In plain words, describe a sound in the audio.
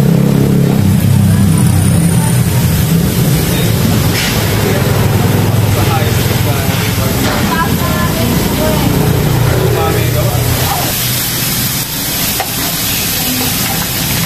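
Meat patties sizzle on a hot griddle.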